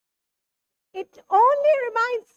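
A young woman speaks with animation through a microphone.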